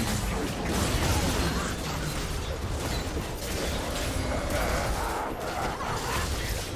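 Magic blasts and clashing effects burst in a video game battle.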